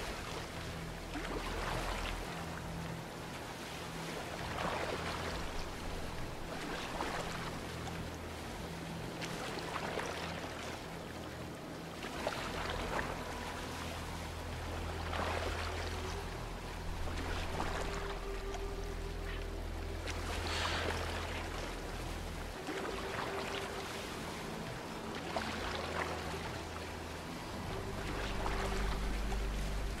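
Water laps and swishes against a small wooden boat.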